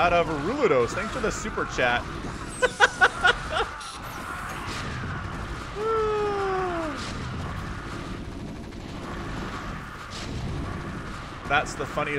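Explosions boom in a game battle.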